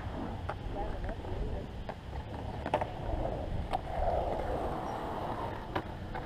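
Skateboard wheels roll and rumble on concrete, fading into the distance.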